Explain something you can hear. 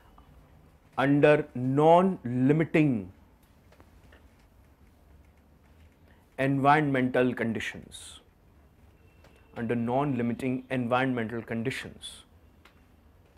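A man lectures in short bursts with pauses.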